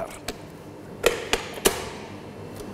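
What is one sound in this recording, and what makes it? A mixer head clicks into place.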